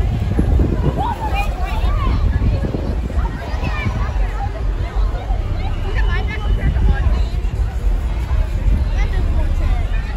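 A crowd chatters and calls out nearby outdoors.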